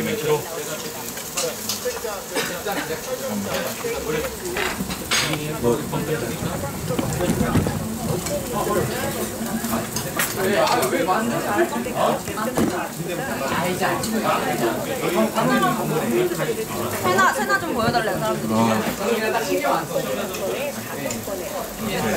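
Young men and women chat and laugh around a table, their voices overlapping in a busy room.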